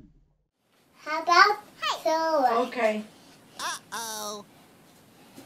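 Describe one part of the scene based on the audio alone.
A small child squeals and babbles excitedly close by.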